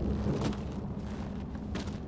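Footsteps crunch on rocky ground.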